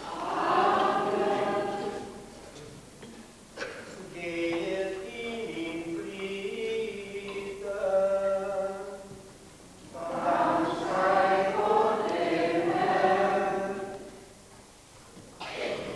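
A congregation of men and women sings slowly together in a large echoing hall.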